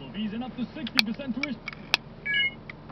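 A cable connector clicks into a phone.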